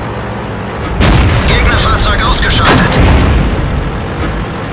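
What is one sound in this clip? A tank cannon fires with a loud blast that echoes away.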